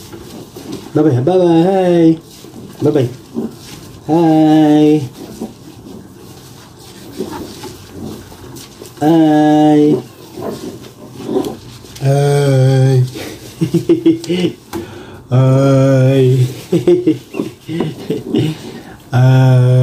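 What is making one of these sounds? A man speaks playfully in a high, sing-song voice close by.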